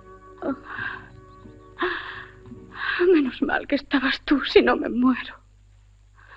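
A woman sobs and cries out in distress.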